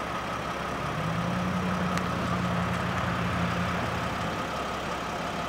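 A vehicle engine hums nearby.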